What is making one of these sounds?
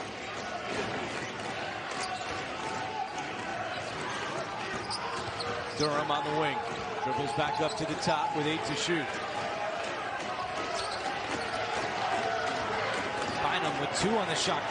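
A large indoor crowd murmurs steadily in an echoing hall.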